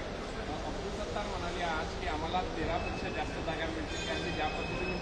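A middle-aged man speaks calmly into a microphone close by.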